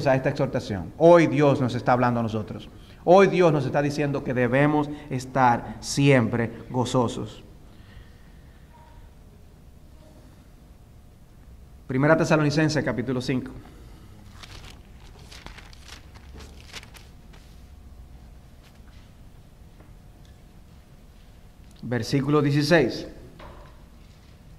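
A middle-aged man speaks with animation into a microphone, in pauses.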